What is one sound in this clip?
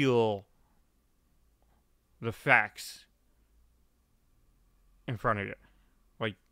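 A young man speaks in short bursts into a close microphone, with pauses between.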